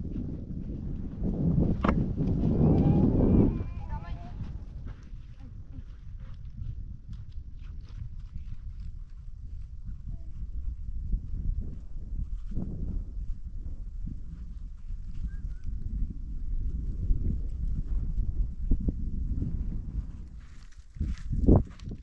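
Wind blows across an open hillside, rumbling against the microphone.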